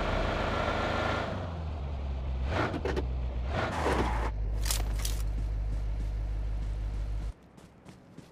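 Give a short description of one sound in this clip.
A car engine drones steadily and then cuts off.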